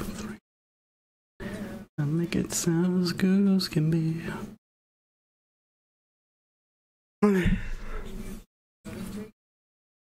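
A young man talks with animation close to a microphone.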